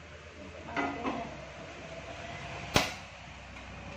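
A metal spoon clinks against a steel pot.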